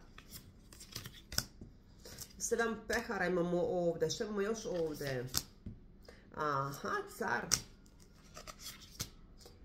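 Playing cards shuffle and riffle in a woman's hands.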